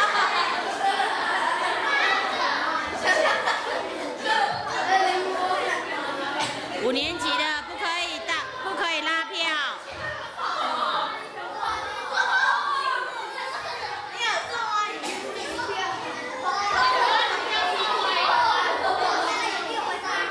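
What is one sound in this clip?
Young girls laugh nearby.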